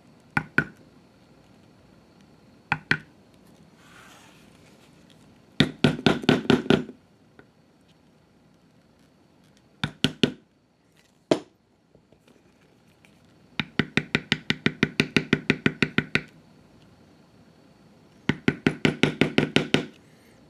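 A mallet taps a metal tooling stamp into vegetable-tanned leather in quick bursts.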